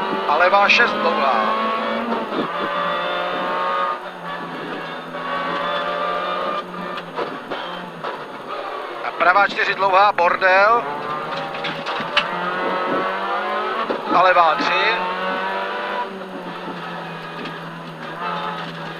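A man calls out pace notes over an intercom.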